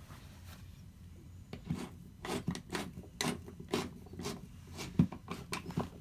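A screwdriver squeaks as it drives screws into a wall.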